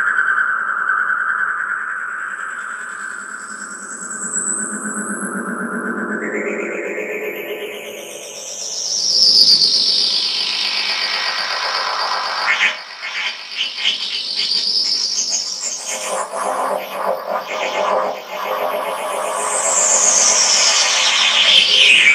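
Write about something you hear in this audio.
Electronic synthesizer tones glide slowly up and down, with a fast fluttering pulse later on.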